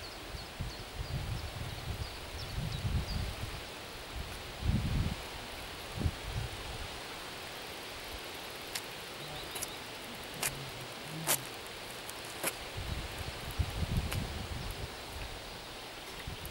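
Wind gusts and rumbles outdoors, rustling tall grass.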